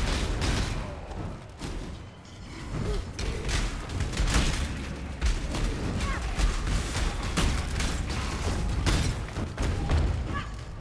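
Deep booming rumbles roll on and on.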